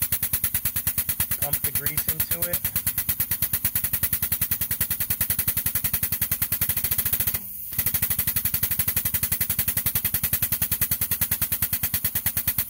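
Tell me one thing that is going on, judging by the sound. Air rushes through a hose into a tyre with a rapid pulsing rattle.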